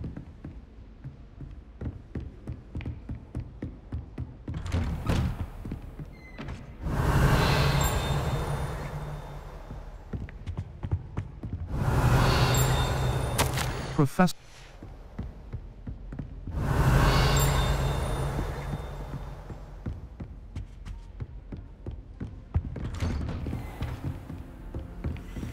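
Quick footsteps tap across a wooden floor.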